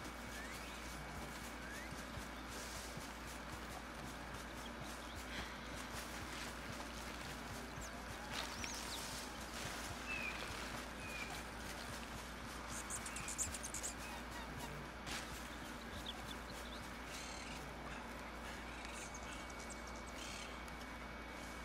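Footsteps crunch through leaves and undergrowth.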